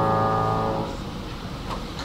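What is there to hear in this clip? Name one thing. A piano chord rings out and fades away.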